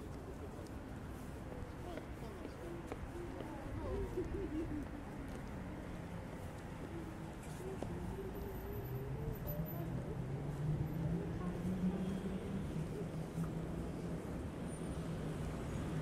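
Footsteps tap on pavement as people walk.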